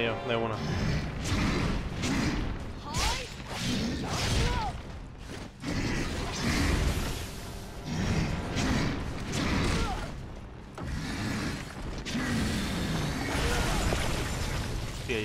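A large monster growls and roars.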